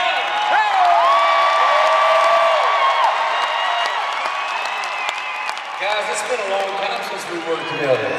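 A large crowd cheers and screams loudly in a big echoing arena.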